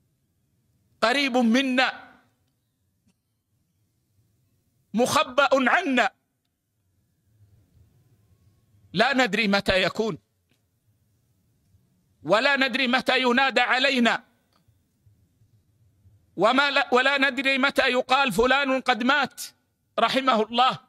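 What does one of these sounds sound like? An elderly man reads aloud slowly into a microphone, in phrases with long pauses.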